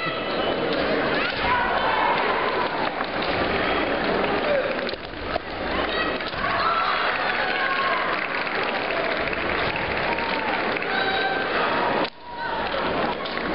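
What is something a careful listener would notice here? A large crowd of spectators cheers and chatters in an echoing hall.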